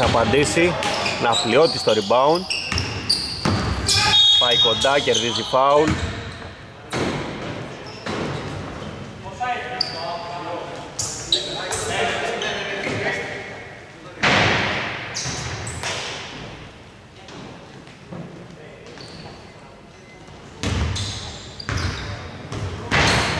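Sneakers squeak sharply on a wooden court, echoing in a large hall.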